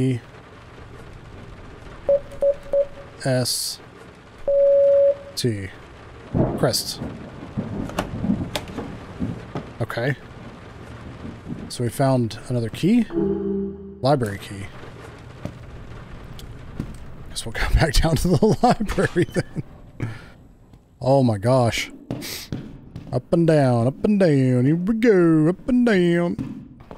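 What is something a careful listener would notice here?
A man talks with animation, close into a microphone.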